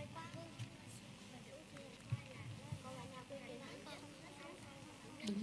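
Children chatter nearby.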